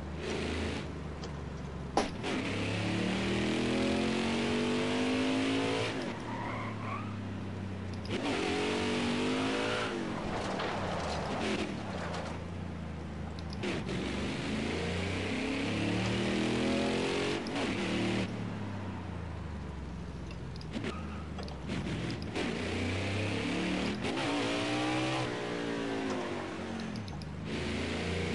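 A V8 stock car engine revs hard up through the gears and drops back on braking.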